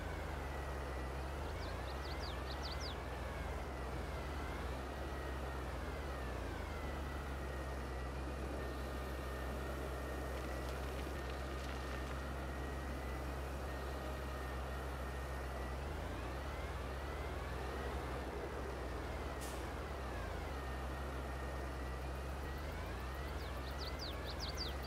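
A tractor engine rumbles steadily and rises and falls in pitch as the tractor turns.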